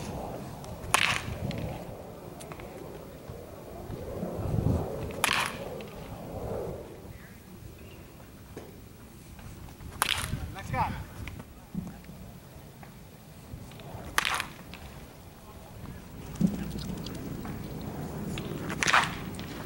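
A bat cracks sharply against a baseball, again and again.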